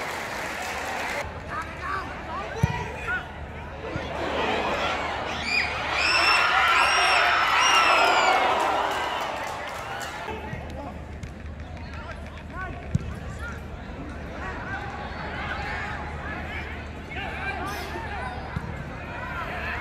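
A stadium crowd cheers and shouts loudly, rising and then fading.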